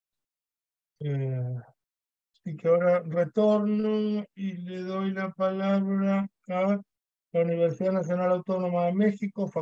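An elderly man speaks calmly over an online call, in short bursts with pauses.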